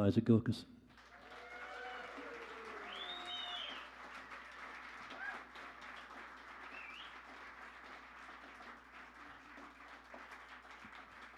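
An audience murmurs and chatters quietly.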